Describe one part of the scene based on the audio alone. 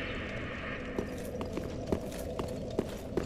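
Armored footsteps clank on a stone floor.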